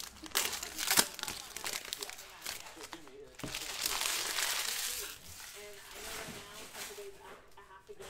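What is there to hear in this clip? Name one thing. Foil wrapping rustles and tears as a pack is opened.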